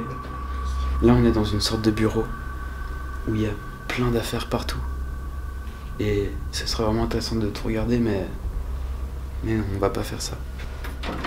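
A young man talks quietly and close by.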